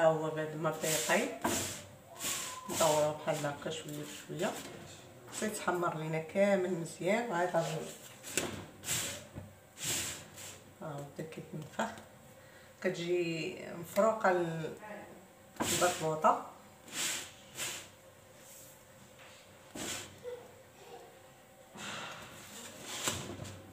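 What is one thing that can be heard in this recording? Fingers pat and press flatbread on a hot griddle.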